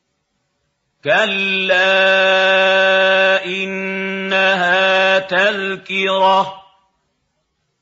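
An elderly man chants in a long, drawn-out melodic voice, close to the microphone.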